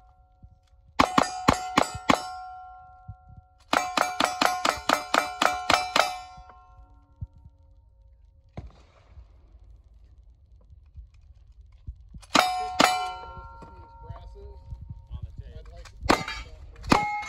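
Gunshots crack in quick bursts outdoors.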